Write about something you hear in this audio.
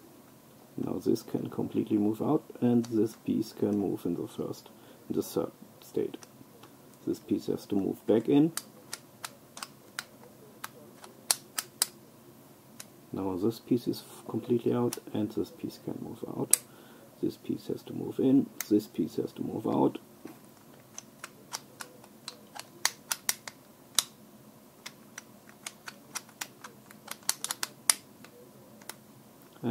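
Small plastic pieces click and snap.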